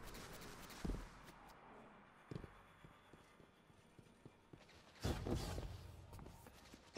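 Footsteps tap quickly on a hard metal floor.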